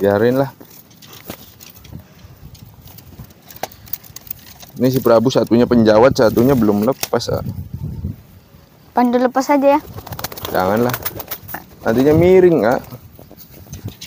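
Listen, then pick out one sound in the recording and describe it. Pigeons coo nearby, outdoors.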